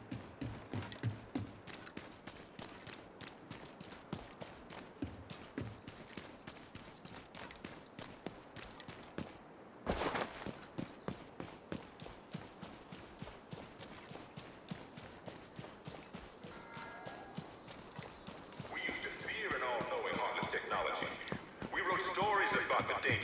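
Quick footsteps run over hard ground and through grass.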